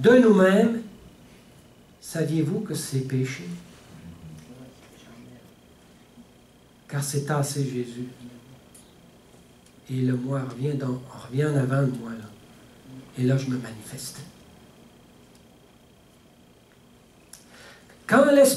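An older man speaks calmly through a headset microphone, in short phrases with pauses.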